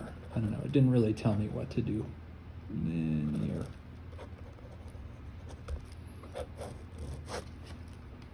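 A pen scratches across paper as it writes.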